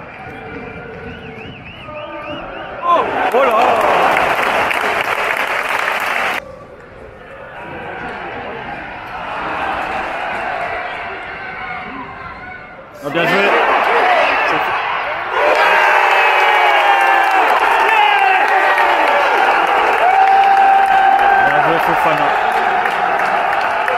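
A stadium crowd chants and sings loudly.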